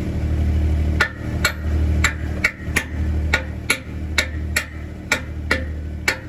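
A gloved hand knocks repeatedly against a metal disc.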